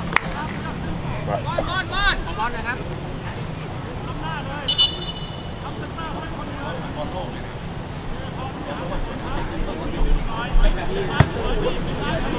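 Young men shout and call out across an open outdoor pitch.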